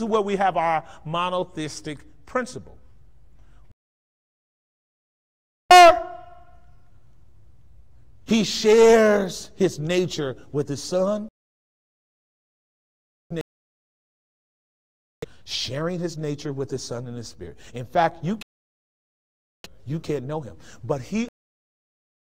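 A man speaks with animation through a microphone, pausing often.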